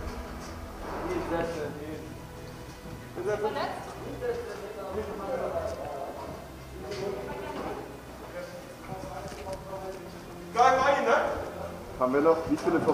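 Young men talk urgently to each other nearby.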